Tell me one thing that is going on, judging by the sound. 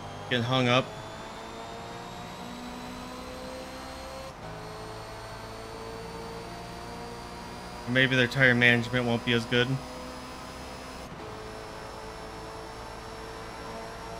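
A racing car engine hums steadily, shifting gears as it speeds up.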